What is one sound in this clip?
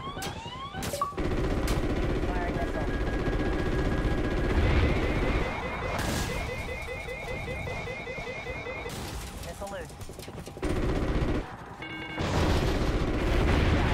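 Missiles explode with loud booms.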